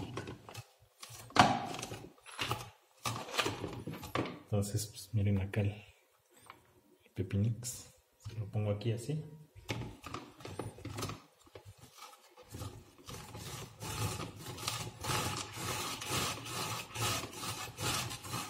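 Plastic parts clatter and knock together.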